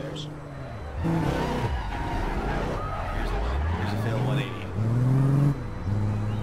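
A car engine revs up and down as a car turns.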